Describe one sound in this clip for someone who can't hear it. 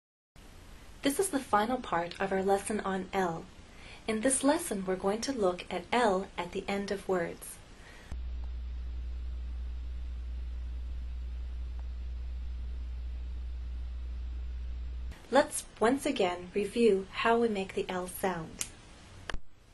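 A young woman speaks cheerfully and clearly, close by.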